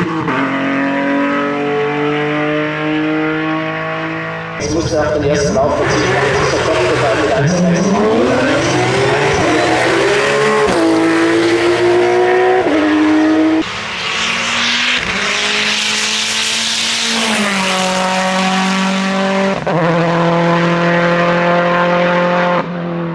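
A racing car engine roars loudly as it accelerates up a road.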